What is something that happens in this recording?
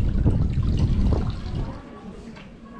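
Water pours and splashes into a metal basin close by.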